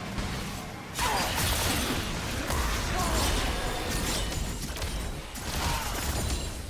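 Game spell effects whoosh and crackle in a fight.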